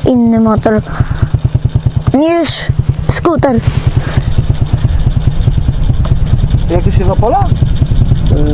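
A dirt bike engine idles with a rapid, steady chugging.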